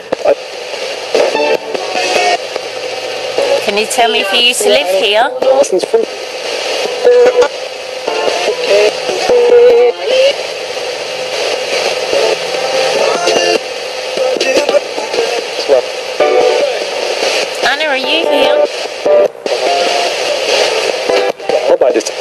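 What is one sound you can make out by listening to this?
A portable radio scanning through stations plays bursts of static and broken snatches of broadcast through a small speaker.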